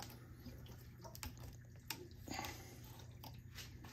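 A plastic valve handle clicks as it turns.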